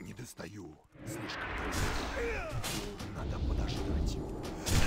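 Magic spells and weapon blows clash in a fight.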